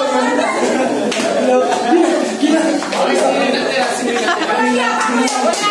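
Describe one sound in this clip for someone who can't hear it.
A group of young men and women talk and shout over each other close by.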